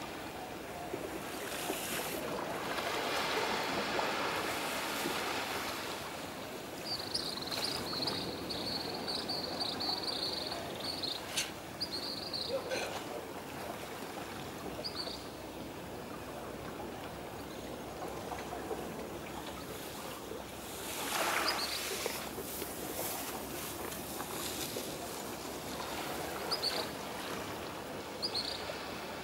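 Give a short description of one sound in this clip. Calm water laps gently outdoors in a light breeze.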